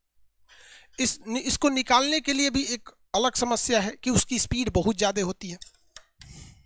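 A man speaks with animation close to a headset microphone.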